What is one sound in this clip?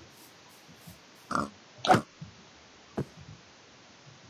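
A pig grunts.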